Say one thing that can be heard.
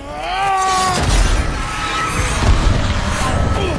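A loud explosion bursts with a deep boom.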